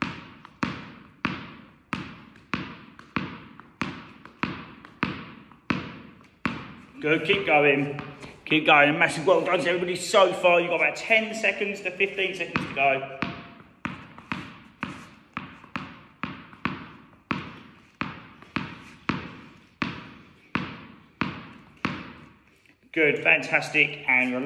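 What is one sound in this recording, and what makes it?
A tennis ball bounces on a hard floor in a steady rhythm, echoing in a large hall.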